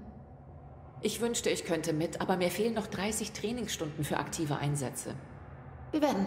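A woman speaks calmly and close.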